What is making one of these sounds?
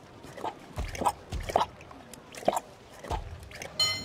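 A horse drinks water with slurping sounds.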